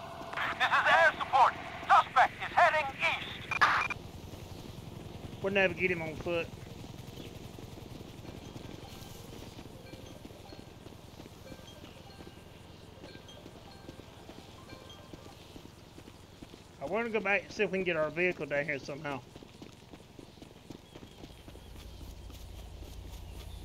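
Footsteps run over loose gravel and dirt.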